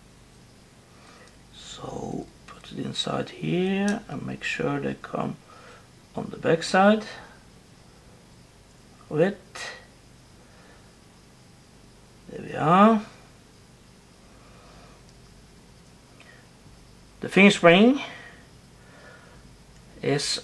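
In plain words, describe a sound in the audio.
Small metal parts click and scrape softly as they are handled.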